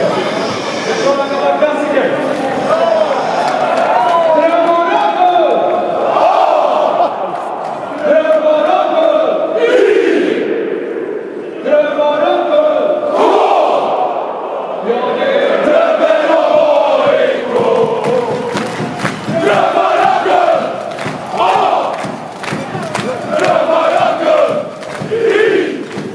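A man speaks with animation through loudspeakers that echo across a large open stadium.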